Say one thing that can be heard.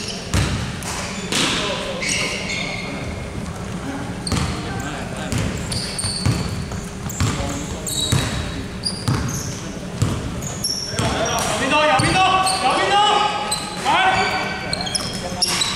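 Basketballs bounce with sharp thuds in a large echoing hall.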